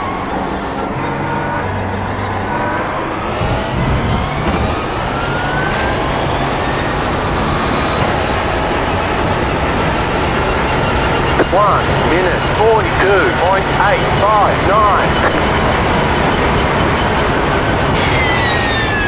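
A racing car engine roars, climbing in pitch as it shifts up through the gears.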